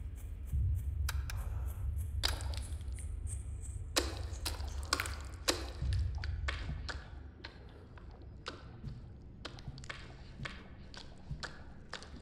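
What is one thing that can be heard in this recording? Footsteps thud on a hard floor.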